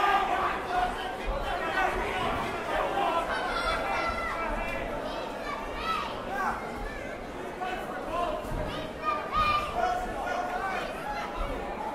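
Gloved punches thud against bodies.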